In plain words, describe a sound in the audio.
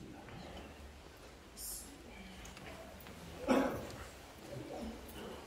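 Men murmur quietly nearby.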